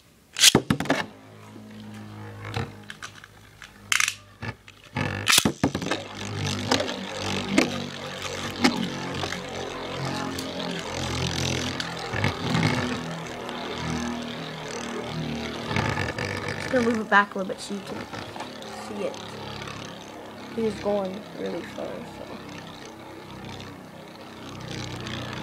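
Spinning tops whir steadily on a plastic surface.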